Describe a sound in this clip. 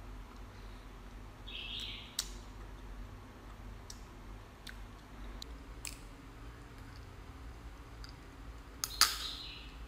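A young woman chews and slurps close to a microphone.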